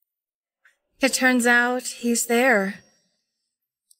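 Another young woman speaks softly, close by.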